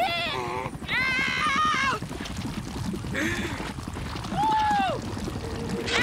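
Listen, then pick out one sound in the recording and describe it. A cartoon man shouts excitedly.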